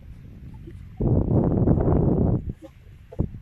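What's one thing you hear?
Wind rumbles against the microphone outdoors.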